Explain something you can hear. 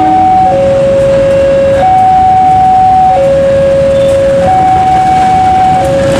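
A diesel train rumbles along the tracks as it approaches.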